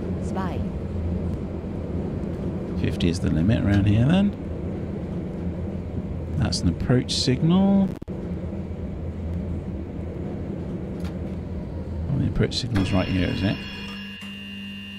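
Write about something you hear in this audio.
Tram wheels rumble along the rails.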